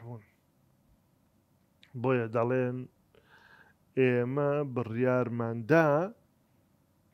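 A middle-aged man speaks with feeling into a close microphone, in short bursts with pauses.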